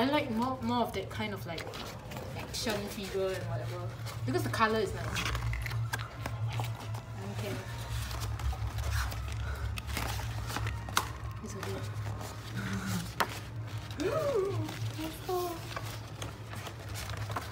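Glossy pages rustle and flap as they are turned.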